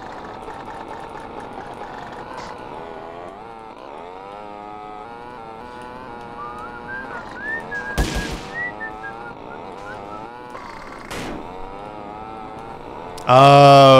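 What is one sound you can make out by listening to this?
A motorbike engine revs and hums, rising and falling in pitch.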